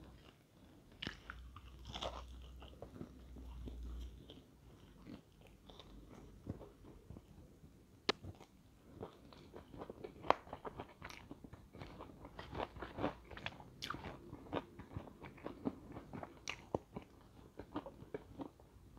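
A woman bites and chews crunchy fried chicken close to a microphone.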